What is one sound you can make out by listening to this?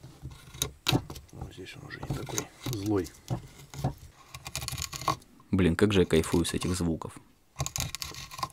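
A chisel scrapes and shaves wood.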